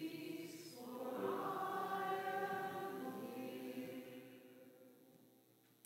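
A small group of women sings a held final note that fades away in an echoing hall.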